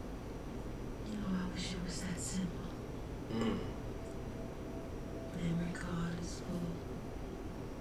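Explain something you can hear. A woman speaks quietly.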